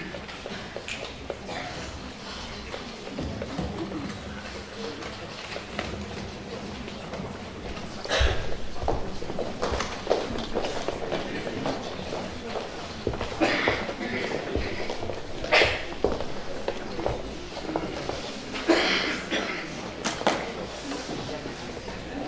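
A man reads out through a microphone in a large echoing hall.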